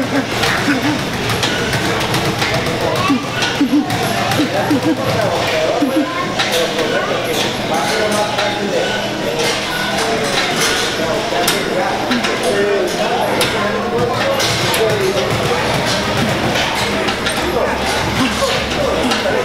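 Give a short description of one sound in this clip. A man talks energetically, close by.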